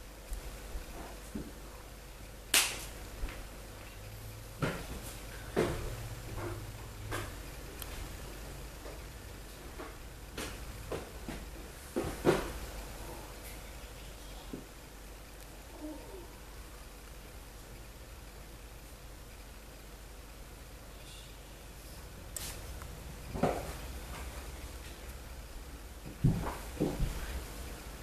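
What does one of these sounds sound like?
Cloth rustles softly with small bumps and scrapes close by.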